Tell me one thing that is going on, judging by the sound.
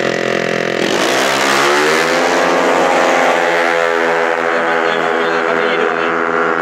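A motorcycle roars off at full throttle, its engine pitch climbing.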